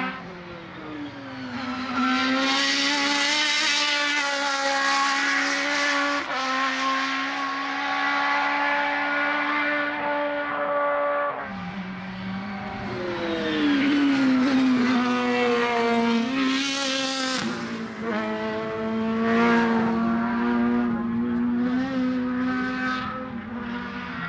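A race car engine roars loudly at high revs, shifting gears as it passes.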